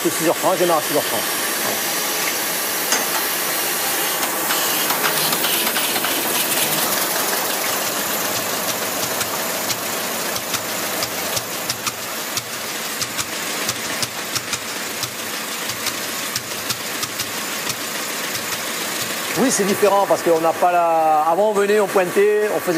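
Packing machines clatter and whir steadily, with rapid ticking.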